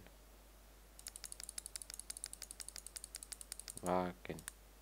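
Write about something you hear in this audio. Soft menu clicks tick rapidly as items change.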